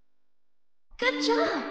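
A short victory fanfare plays.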